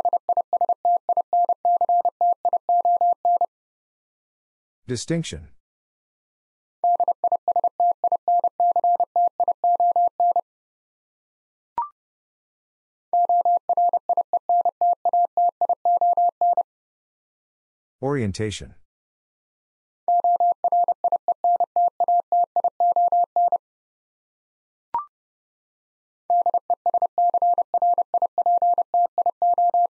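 A Morse code key taps out rapid beeping tones in bursts.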